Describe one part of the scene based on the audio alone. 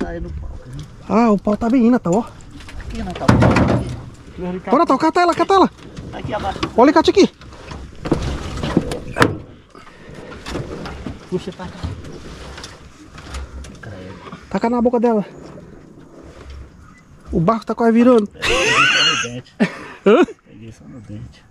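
Men talk and exclaim excitedly up close, outdoors.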